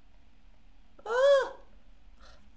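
A young man exclaims with a rising and falling cry, close to a microphone.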